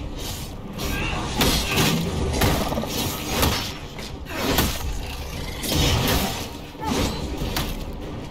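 Weapons clash and strike in sharp, quick blows.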